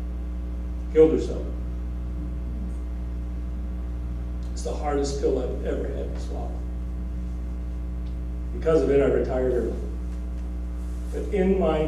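A man speaks in pauses over a loudspeaker in a large echoing hall.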